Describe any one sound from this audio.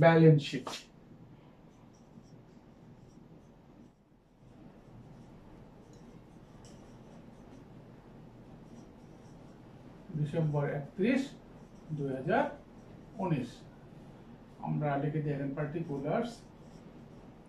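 A middle-aged man speaks calmly in short phrases, close by.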